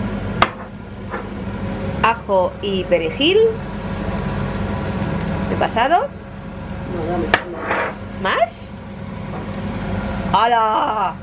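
Meat sizzles in a hot frying pan.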